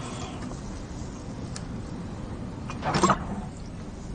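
A young woman gulps a drink from a plastic bottle.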